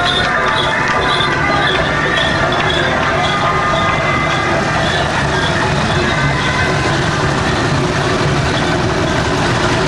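Motor scooters putter past close by.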